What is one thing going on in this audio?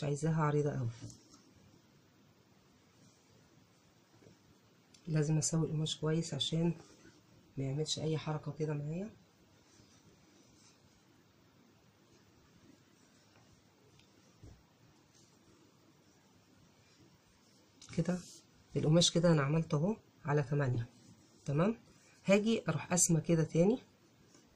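Cloth rustles softly as it is folded and smoothed.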